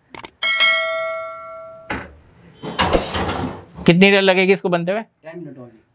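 A metal oven door swings shut with a clunk.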